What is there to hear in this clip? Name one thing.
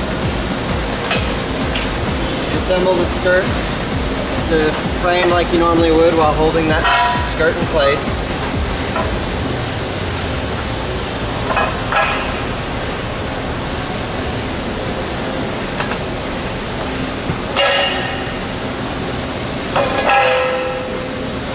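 Metal rails clank and knock against a hard floor.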